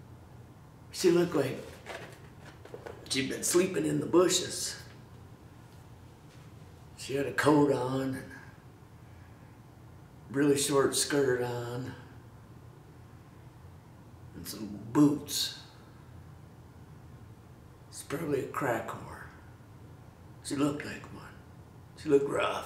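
A middle-aged man speaks close up in short, expressive bursts with pauses between them.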